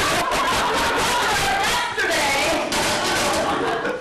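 A wooden chair clatters onto a stage floor.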